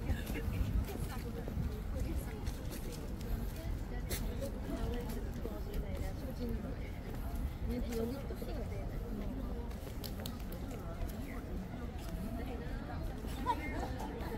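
Voices of a crowd chatter softly in the distance outdoors.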